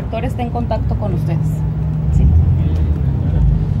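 A young woman speaks with agitation close by.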